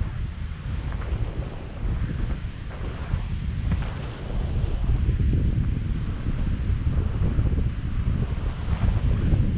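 Wind buffets loudly against a microphone outdoors.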